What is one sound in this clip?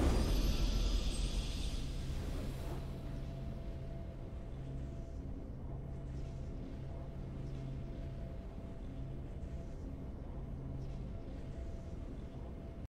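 A triumphant game fanfare rings out and settles into a low, steady droning music.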